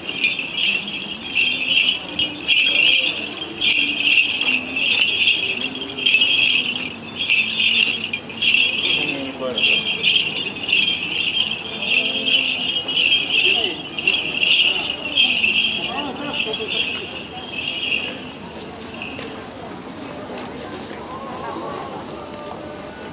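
Men chant together in low voices.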